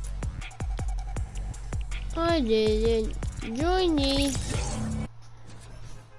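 Loud electronic game music plays with sweeping, swooping synth tones, then cuts off abruptly.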